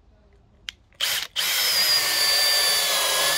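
A cordless drill whirs loudly, driving a screw into wood.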